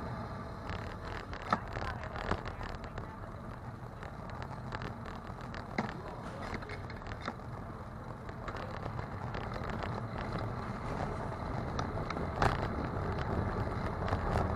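Tyres roll over a city street.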